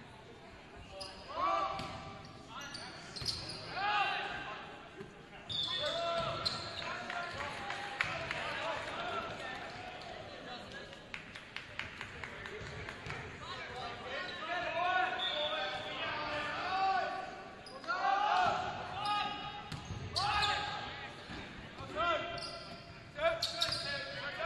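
A volleyball is struck with sharp slaps that echo.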